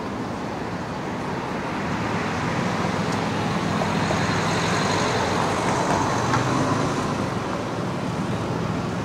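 A car drives past on the street, rising and fading away.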